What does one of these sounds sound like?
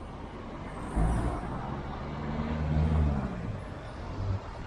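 A car engine hums past nearby.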